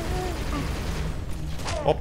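An energy weapon fires with crackling electric zaps.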